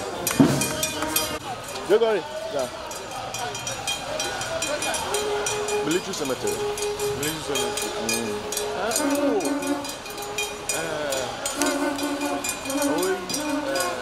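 A crowd of men and women sings and calls out loudly outdoors.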